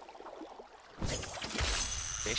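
A thrown spear splashes into water.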